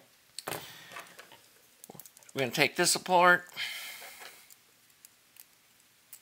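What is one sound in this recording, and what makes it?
Small metal parts click and scrape together in the hands.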